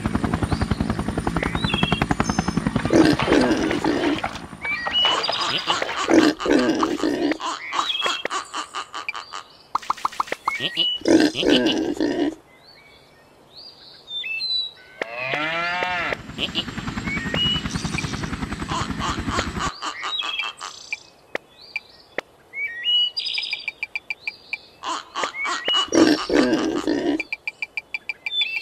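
Cartoon pigs grunt and squeal.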